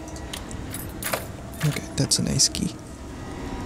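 A key turns and clicks in a door lock.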